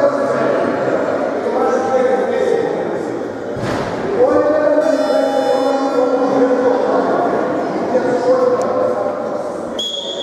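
A man talks to a group of boys in an echoing hall.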